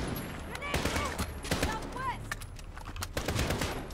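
A rifle magazine clicks out and is slotted back in.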